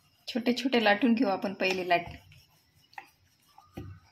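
A wooden rolling pin rolls dough on a wooden board.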